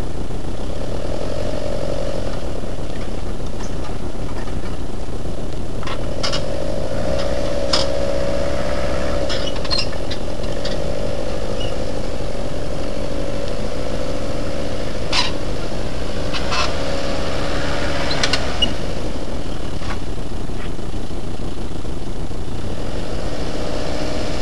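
An off-road vehicle's engine labours and revs as it climbs over rocks.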